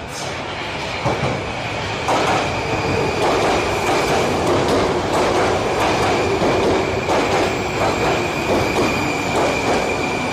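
A metro train rumbles into the station, its wheels clattering rhythmically over rail joints.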